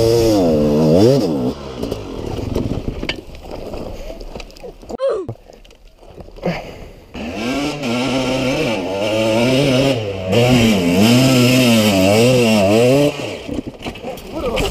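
A dirt bike engine revs hard, rising and falling in pitch.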